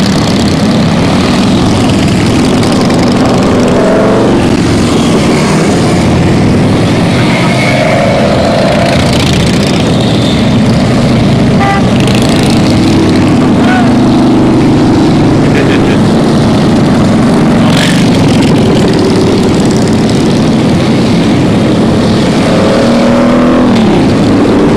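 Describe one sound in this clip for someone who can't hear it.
Motorcycle engines rev and drone as each bike passes.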